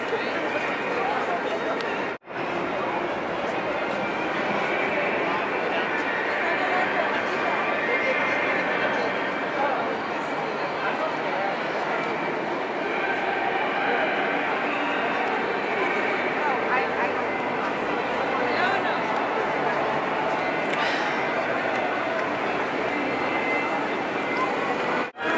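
A large crowd chatters and murmurs all around outdoors.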